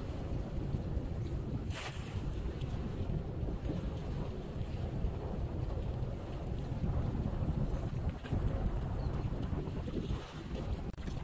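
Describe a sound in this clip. Waves lap against rocks outdoors in wind.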